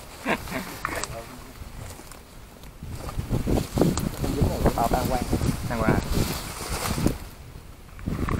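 Leafy plants rustle as they are pushed aside.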